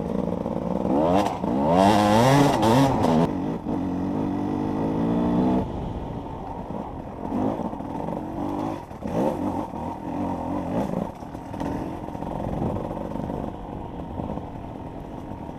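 A dirt bike engine revs hard and changes pitch as the bike rides over rough ground.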